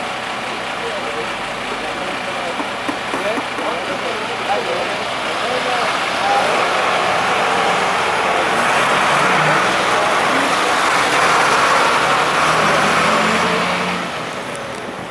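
A heavy truck engine rumbles as the truck drives slowly past.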